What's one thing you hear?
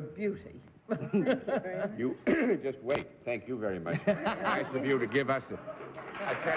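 A middle-aged man speaks cheerfully into a microphone.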